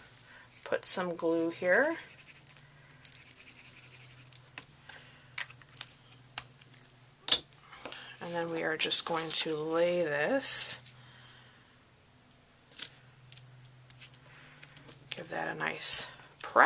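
Paper rustles and taps softly as hands handle it.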